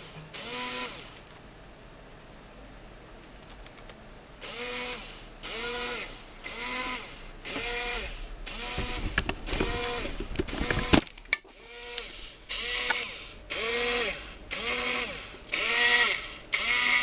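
A small electric motor whirs in short, repeated bursts that rise and fall in pitch.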